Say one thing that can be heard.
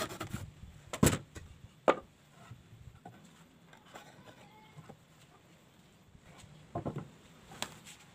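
A chisel taps and scrapes against wood.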